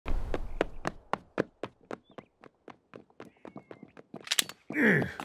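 Quick footsteps patter on pavement.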